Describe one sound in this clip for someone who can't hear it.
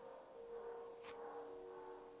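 A pistol clatters onto a wooden floor.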